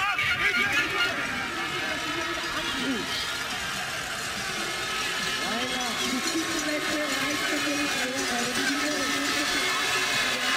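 A large outdoor crowd cheers and shouts continuously.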